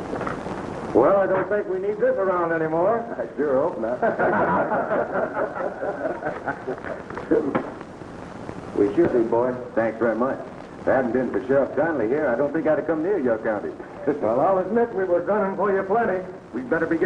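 Several men talk loudly and with animation, close by.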